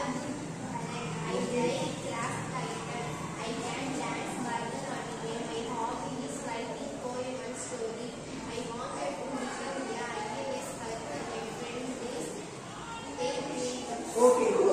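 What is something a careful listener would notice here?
Children talk and answer nearby.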